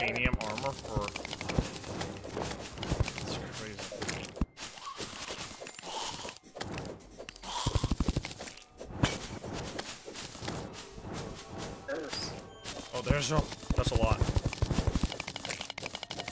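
Rapid electronic hit and blast effects play in a game.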